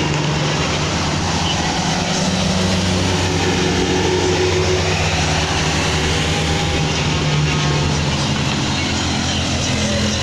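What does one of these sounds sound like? A bus engine rumbles steadily as it climbs slowly nearby.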